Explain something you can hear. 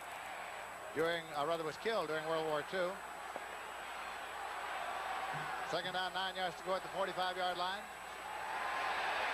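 A large crowd cheers and murmurs in an open stadium.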